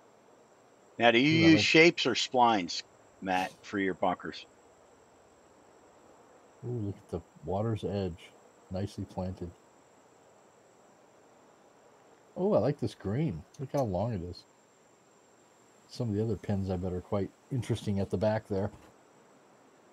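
A middle-aged man talks calmly through a headset microphone, in short bursts.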